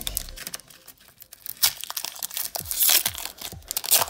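A foil wrapper crinkles and tears as fingers open it.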